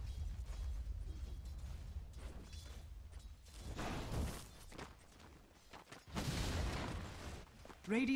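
Game creatures fight with clashing blows and spell effects.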